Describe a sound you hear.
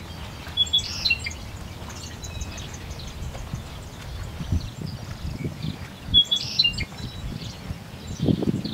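Oars dip and splash softly in calm water.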